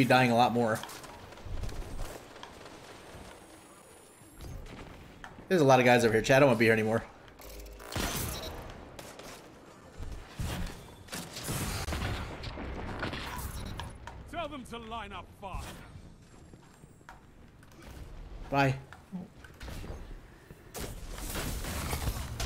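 Gunfire from a game crackles in quick bursts.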